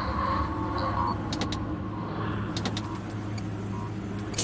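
Short electronic clicks sound as menu options are chosen.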